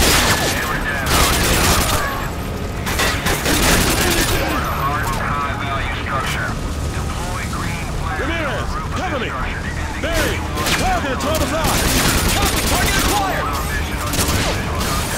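Rifles fire in rapid bursts, with bullets cracking close by.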